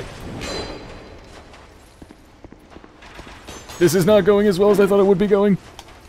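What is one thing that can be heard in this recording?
Armoured footsteps run over stone.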